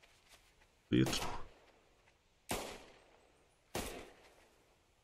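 A rifle fires with a sharp crack and echoes.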